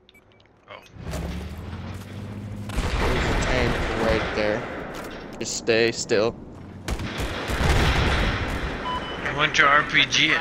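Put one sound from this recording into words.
Gunfire crackles and booms from a game.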